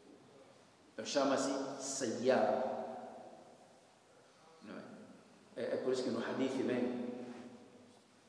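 A man speaks calmly and steadily into a clip-on microphone.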